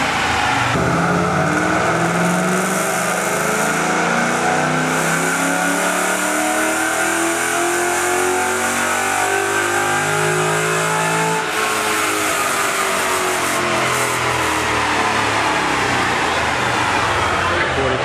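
A spinning tyre whirs loudly on a roller.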